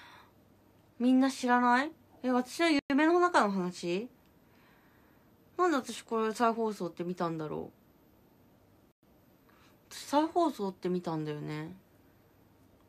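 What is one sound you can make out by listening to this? A young woman talks close to a microphone in short bursts, calmly and expressively.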